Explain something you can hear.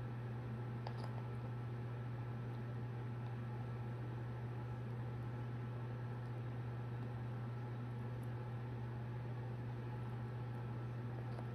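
A parrot nibbles softly at a banana.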